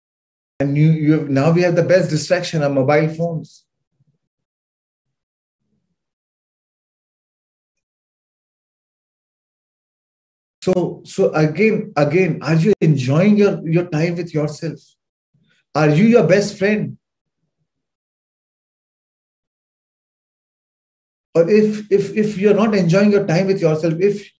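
A man speaks calmly through a microphone on an online call, with long pauses.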